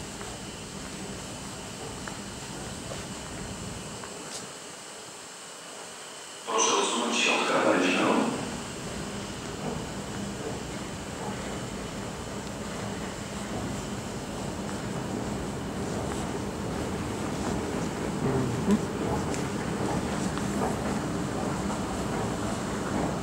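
Escalators hum steadily nearby.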